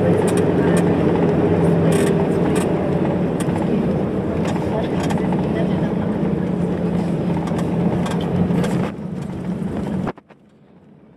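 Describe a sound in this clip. A vehicle's engine rumbles steadily from inside as it drives along.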